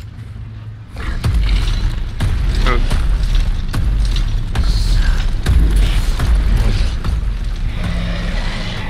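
A huge robotic machine rumbles and thuds heavily nearby.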